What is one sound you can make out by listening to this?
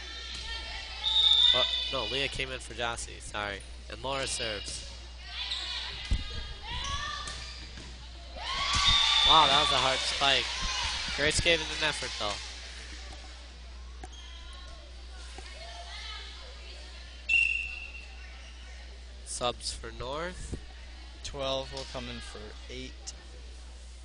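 Girls on a team shout and cheer in an echoing gym.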